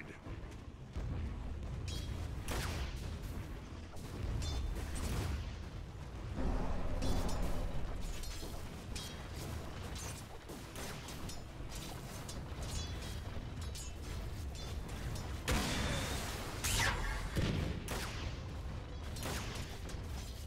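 Game spell effects crackle, whoosh and clash in a busy battle.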